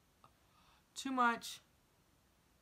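A young woman gasps loudly in surprise.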